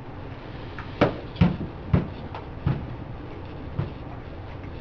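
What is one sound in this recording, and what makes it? Paper rustles and taps as it is handled.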